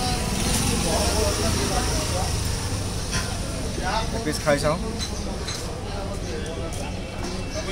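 A spoon scrapes against a plate.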